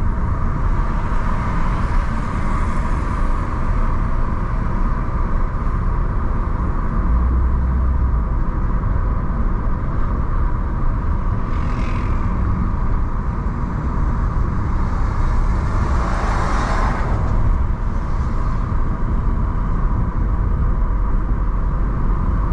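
Tyres roll with a low rumble over the road.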